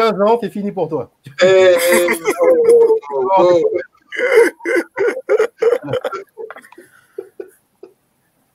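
A young woman laughs loudly over an online call.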